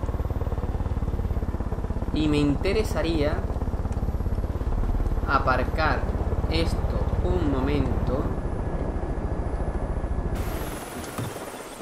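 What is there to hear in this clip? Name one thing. A helicopter engine drones with a fast, steady beating of rotor blades.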